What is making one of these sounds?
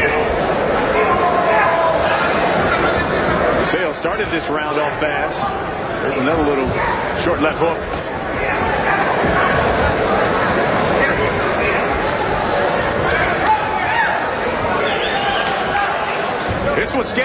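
A crowd murmurs and cheers in a large hall.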